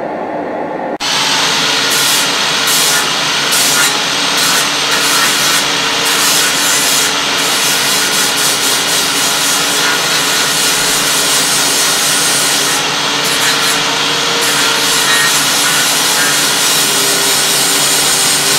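An angle grinder whines loudly as it grinds metal, its pitch dipping and rising as it bites.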